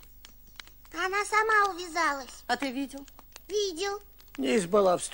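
A boy speaks quietly nearby.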